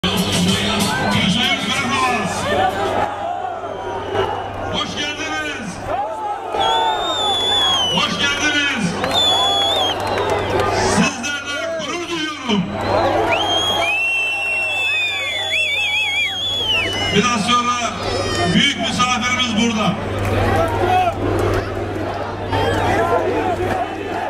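A man speaks loudly and with animation through a microphone and loudspeakers, outdoors.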